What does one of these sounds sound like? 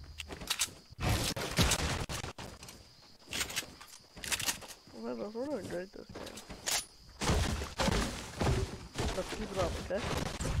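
A rifle fires sharp gunshots.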